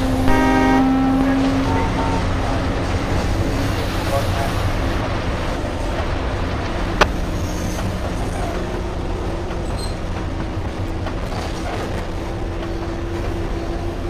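A passing train rumbles and clatters steadily over the tracks.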